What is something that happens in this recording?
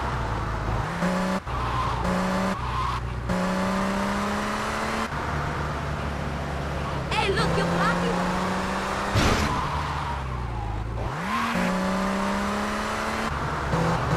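A car engine roars and revs up through the gears.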